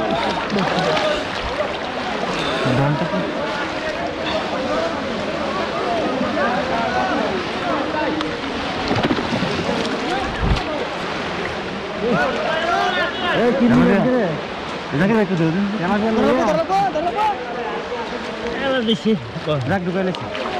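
Many men talk and shout with animation nearby.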